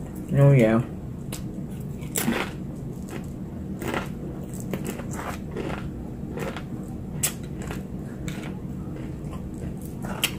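A woman chews and munches food with crunchy sounds.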